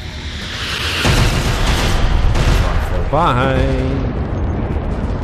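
A large explosion booms and roars close by.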